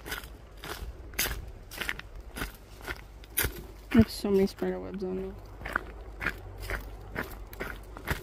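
Footsteps crunch quickly along a dirt trail.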